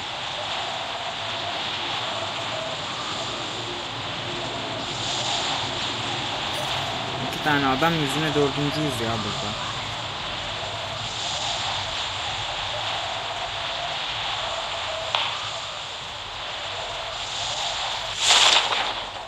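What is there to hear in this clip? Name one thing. Wind rushes steadily past a falling skydiver.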